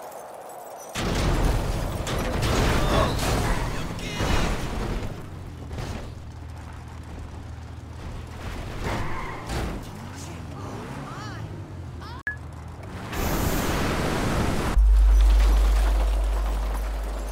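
A car's engine roars in a video game.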